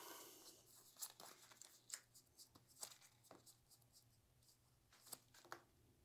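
Cards tap softly onto a mat.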